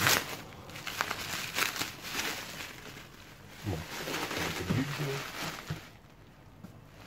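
Bubble wrap and plastic crinkle and rustle in someone's hands.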